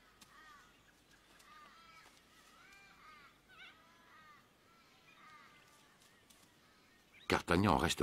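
Dry leaves rustle softly as a young kangaroo shuffles on the ground.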